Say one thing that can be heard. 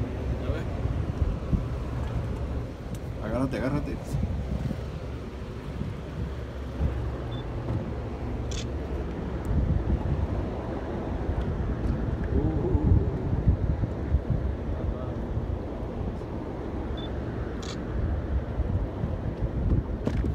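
Wind buffets the microphone outdoors on open sea.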